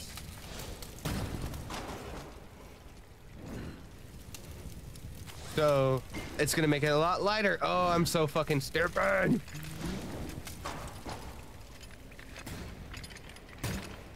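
A torch flame crackles steadily.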